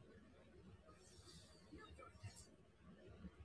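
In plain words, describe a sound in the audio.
Bedding rustles softly as a person shifts on a pillow.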